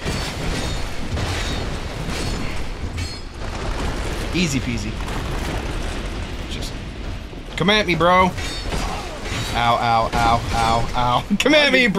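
Swords clang and armour clanks in a game fight.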